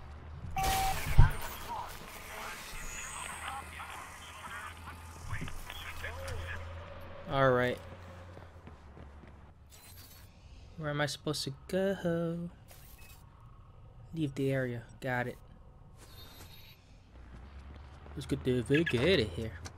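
Footsteps run over pavement.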